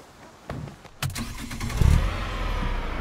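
A car engine starts up with a roar.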